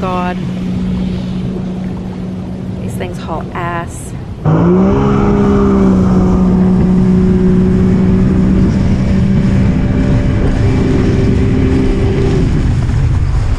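A personal watercraft engine roars steadily up close.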